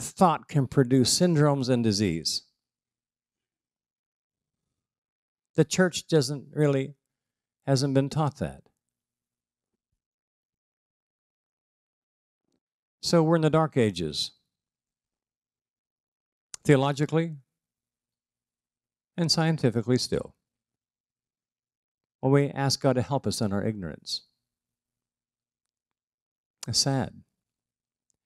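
An elderly man speaks calmly through a microphone, pausing between phrases.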